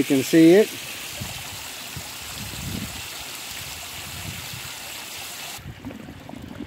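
Water bubbles and fizzes steadily close by.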